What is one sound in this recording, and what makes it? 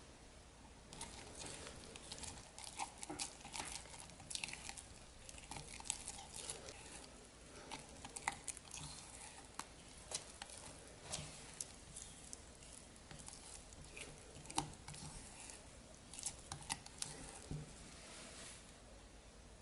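A silicone spatula stirs and scrapes thick icing in a glass measuring jug.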